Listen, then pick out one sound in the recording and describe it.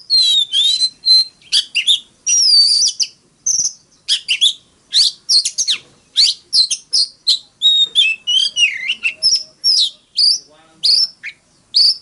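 A songbird sings loud, varied whistling phrases and trills close by.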